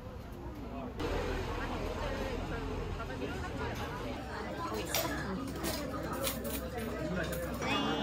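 Diners chatter in a busy room.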